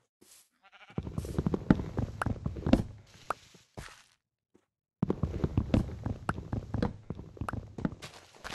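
An axe chops at wood with quick dull knocks.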